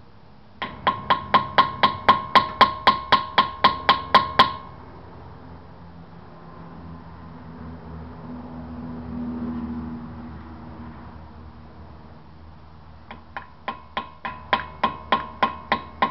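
A ratchet wrench clicks rapidly and evenly while turning a wheel nut.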